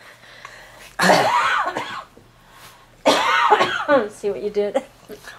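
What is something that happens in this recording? A middle-aged woman laughs loudly close by.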